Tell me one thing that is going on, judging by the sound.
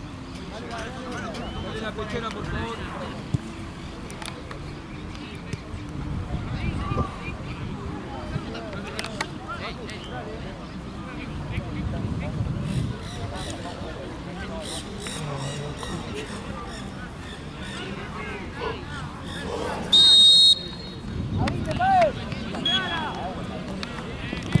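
Young men talk and call out across an open outdoor field.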